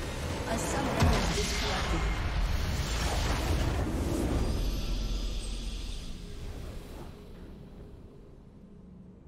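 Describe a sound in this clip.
A triumphant game fanfare plays and fades out.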